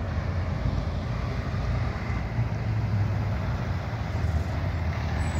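A heavy truck engine rumbles as trucks pass close by.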